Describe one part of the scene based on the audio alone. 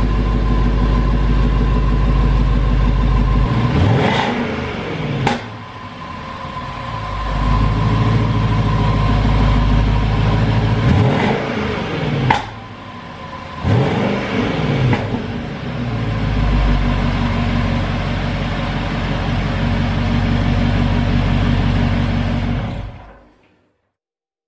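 A car engine idles and revs loudly through its exhaust, rumbling and roaring.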